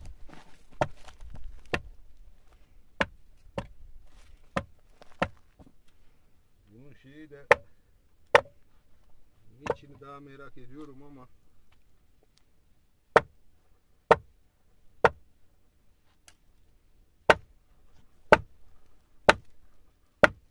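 A pick strikes rock with sharp, ringing blows at an uneven pace.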